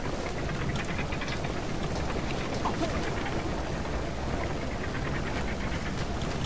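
Lava rumbles and bubbles steadily.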